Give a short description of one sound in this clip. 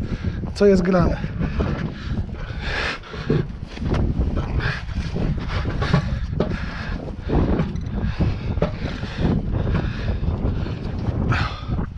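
A gloved hand rubs and pats a rubber tyre.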